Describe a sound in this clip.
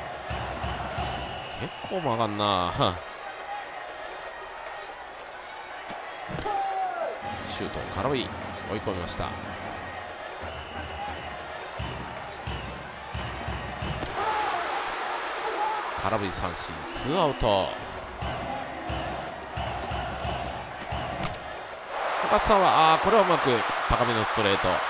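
A stadium crowd cheers and chants throughout.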